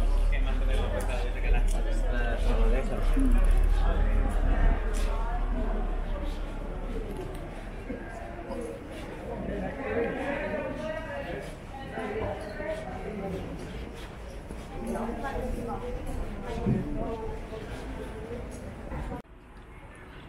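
People chatter and talk nearby on a lively street.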